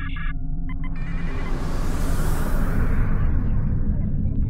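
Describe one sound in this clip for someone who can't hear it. A rushing whoosh swells as a ship speeds away, then fades.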